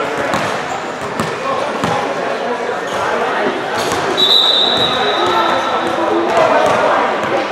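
Basketballs bounce on a hard court in a large echoing gym.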